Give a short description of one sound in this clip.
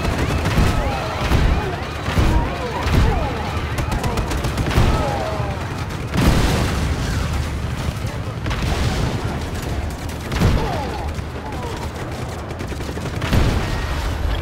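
Loud explosions boom again and again.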